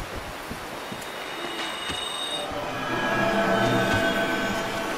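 A soft shimmering chime rings out and lingers.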